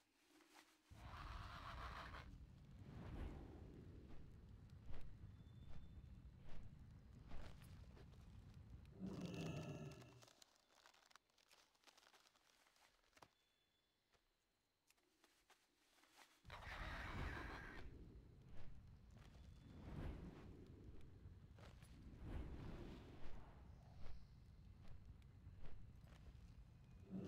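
Wings flap heavily and rhythmically.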